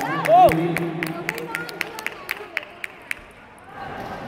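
A table tennis ball clicks back and forth in a rally in a large echoing hall.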